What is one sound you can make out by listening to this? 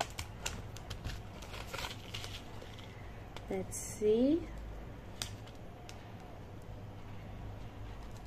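Paper rustles and crinkles in a young woman's hands.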